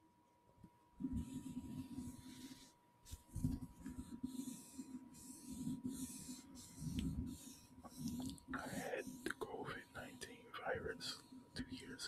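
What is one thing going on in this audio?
A man speaks quietly close to the microphone.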